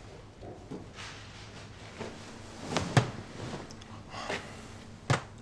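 Bedding rustles as a blanket is pulled.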